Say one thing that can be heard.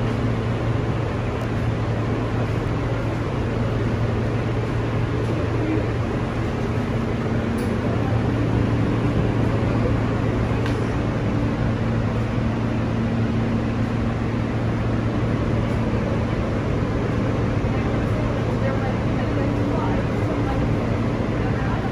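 A subway train rumbles and rattles steadily along the tracks.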